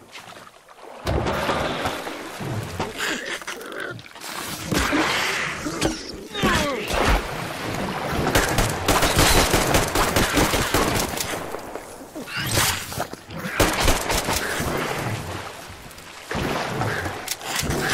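A monster screeches and snarls up close.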